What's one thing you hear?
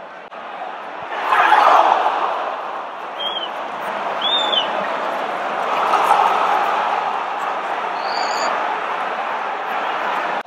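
A large stadium crowd roars in sudden excitement.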